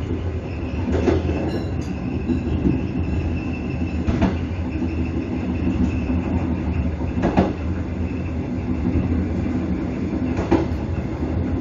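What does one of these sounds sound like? Train wheels click over rail joints at regular intervals.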